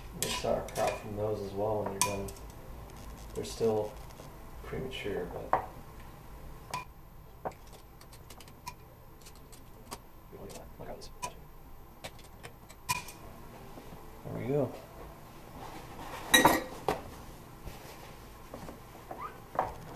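Metal tongs clink against a ceramic pot.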